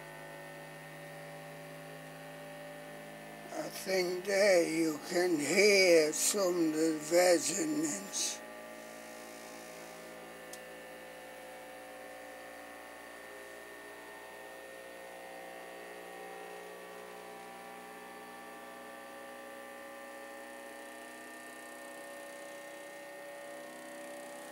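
A machine's cooling fans hum steadily.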